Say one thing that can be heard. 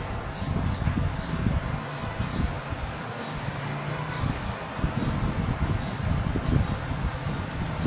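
A plastic bottle taps and squeezes against a board.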